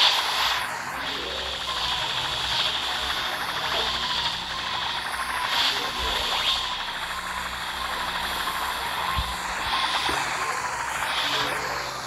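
Fire blasts roar and whoosh steadily.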